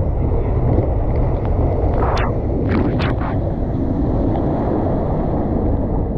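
Water rushes and splashes loudly down a slide.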